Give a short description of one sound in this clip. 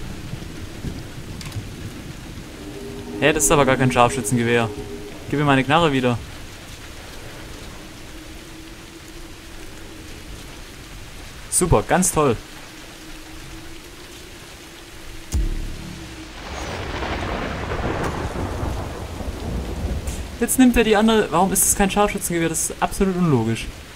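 Rain patters steadily all around.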